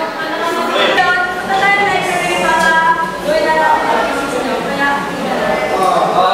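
A young woman speaks firmly and clearly.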